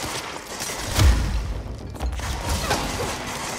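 A large explosion booms and debris crashes.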